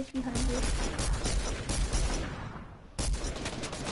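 A gun fires in quick shots.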